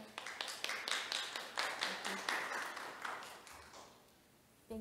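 Several people clap their hands in a room.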